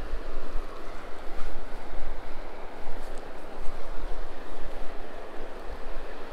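A spinning fishing reel whirs as its handle is cranked.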